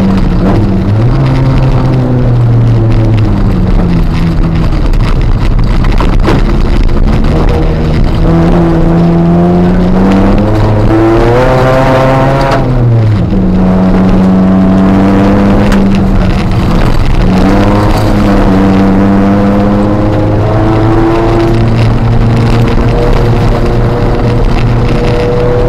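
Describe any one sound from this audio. Tyres crunch and rumble over gravel.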